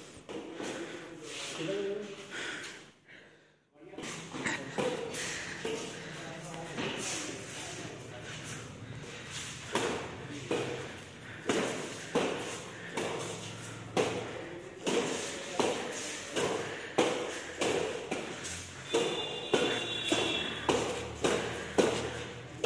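Badminton rackets hit a shuttlecock back and forth with sharp pops.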